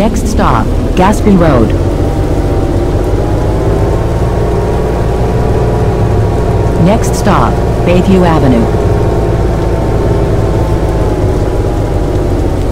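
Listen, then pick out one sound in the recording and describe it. A bus engine drones steadily as the bus drives along.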